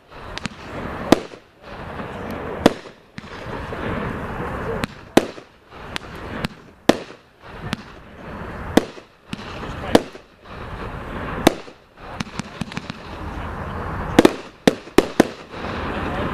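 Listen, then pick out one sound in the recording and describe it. Fireworks burst with loud sharp bangs, one after another.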